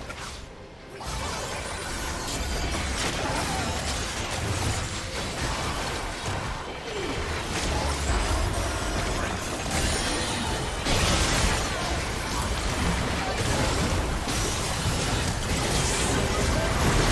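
Magical spells crackle and burst in a chaotic fight.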